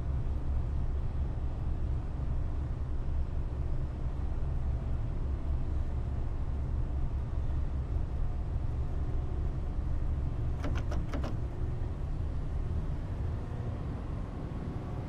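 A train's motor rumbles low and steady.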